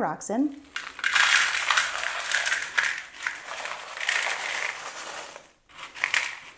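Small pebbles pour and rattle into a glass bowl.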